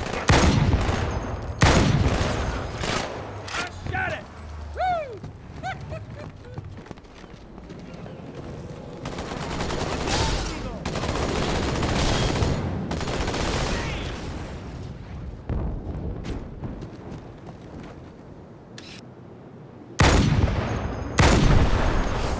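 Heavy rifle shots boom loudly, with a ringing echo.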